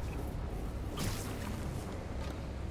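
A web line zips and whooshes as a figure swings down.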